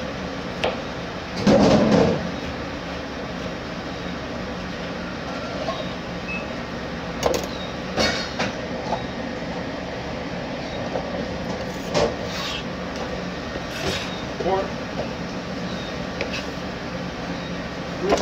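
A knife chops through peppers with sharp knocks.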